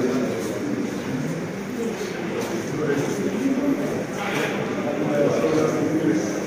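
A crowd of men murmur and talk nearby.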